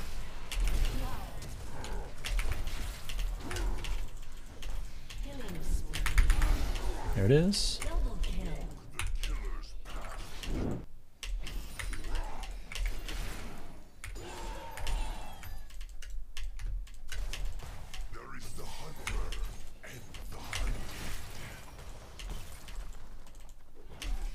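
Game battle sound effects clash and crackle with quick hits and blasts.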